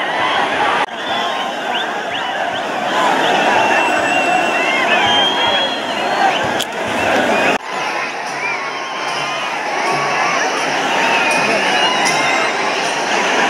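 A huge crowd cheers and shouts loudly outdoors.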